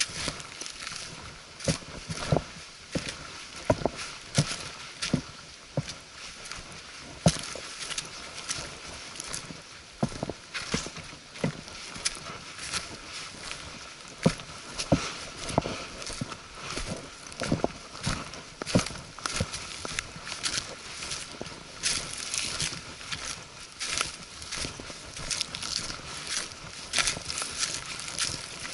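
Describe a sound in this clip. Footsteps crunch on dry leaves and twigs along a forest trail.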